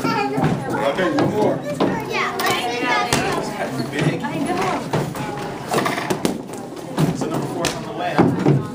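A small child taps a golf ball with a plastic putter.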